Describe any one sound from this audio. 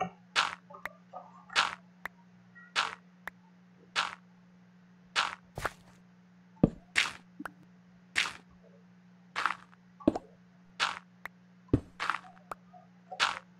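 Footsteps crunch on gravel at a steady pace.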